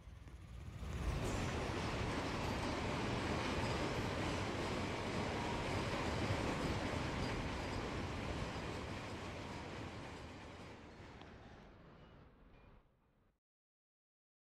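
A train rumbles loudly along the rails nearby, then fades away.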